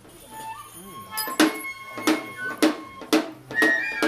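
A drum beats in quick strokes.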